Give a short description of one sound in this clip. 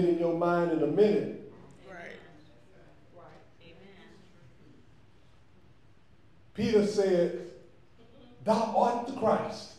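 An elderly man preaches with fervour through a microphone in an echoing hall, pausing between phrases.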